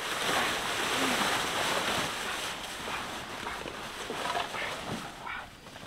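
Large leaves rustle and swish as a man handles them.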